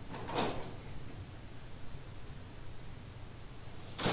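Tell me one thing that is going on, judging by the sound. A heavy metal door slowly creaks open.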